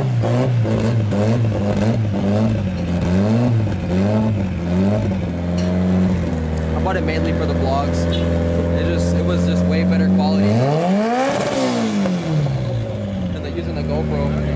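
A car engine revs up and down sharply.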